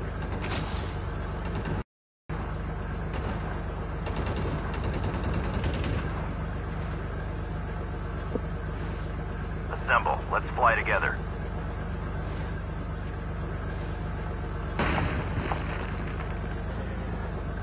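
A tank engine rumbles nearby.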